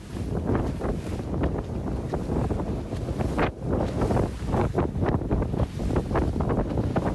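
Fast-flowing sea water rushes and churns outdoors.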